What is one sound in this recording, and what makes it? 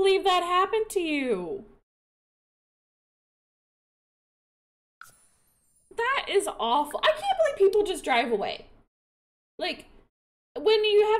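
A woman talks with animation into a close microphone, with a sing-song, drawn-out voice.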